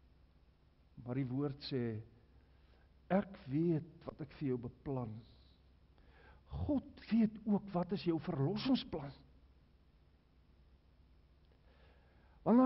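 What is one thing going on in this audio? An elderly man preaches with emphasis through a microphone in a large echoing hall, pausing between phrases.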